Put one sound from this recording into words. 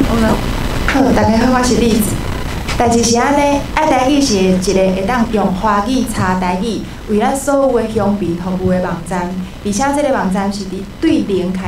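A young woman speaks calmly into a microphone, heard through loudspeakers.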